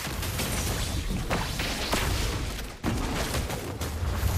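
Magic blasts burst and crackle in a fast game fight.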